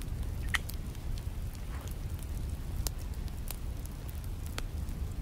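A small fire crackles and pops close by.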